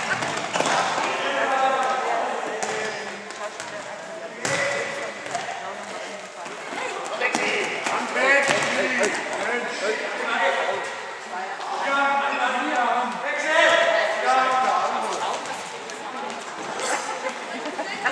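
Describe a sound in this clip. Young players shout and call out in a large echoing hall.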